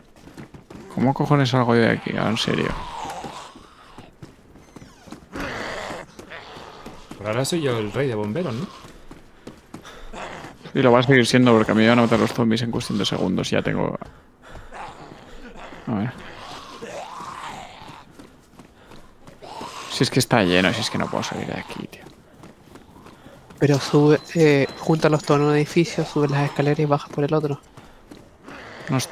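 A man talks with animation, close to a microphone, in bursts with pauses.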